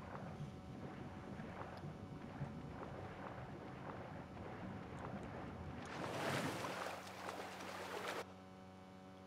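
Water laps gently.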